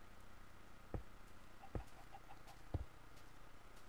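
Stone blocks thud as they are placed.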